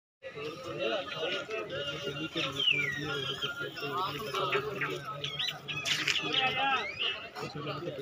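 Several men talk with one another nearby, outdoors.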